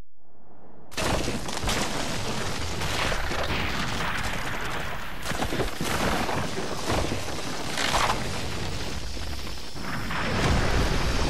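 Rock cracks and crumbles with a loud, deep rumble.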